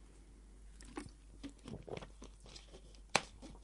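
A plastic bottle crinkles and clicks as a cap is screwed on.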